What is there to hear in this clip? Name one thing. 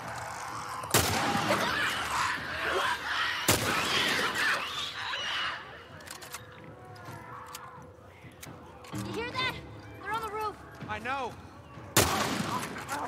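A rifle fires loud shots with an echo.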